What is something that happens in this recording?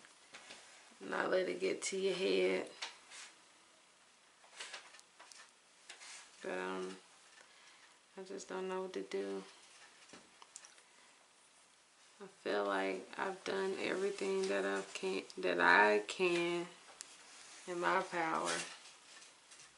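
A young woman talks calmly close by, in short bursts.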